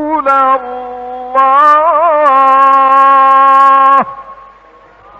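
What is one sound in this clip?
An elderly man chants in a long, held, melodic voice.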